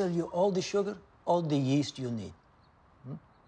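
A man speaks calmly and clearly up close.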